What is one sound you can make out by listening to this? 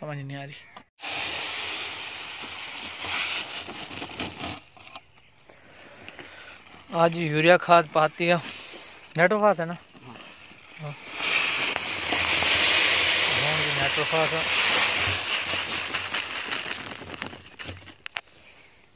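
Loose dry material pours from a sack into a plastic barrel with a steady rushing hiss.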